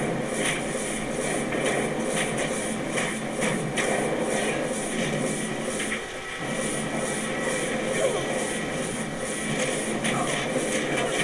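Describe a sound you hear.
Blows and spell hits strike in quick succession.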